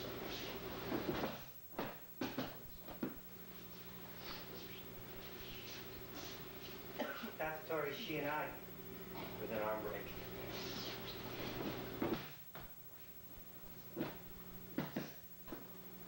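Bodies thump onto a mat.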